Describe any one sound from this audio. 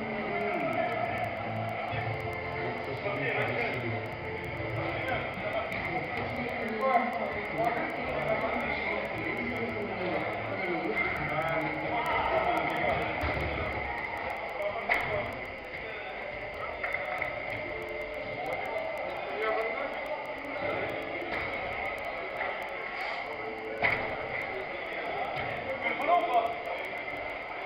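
Men shout and call out to each other during a game, echoing in a large hall.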